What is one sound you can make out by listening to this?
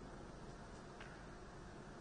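Billiard balls knock together with a click.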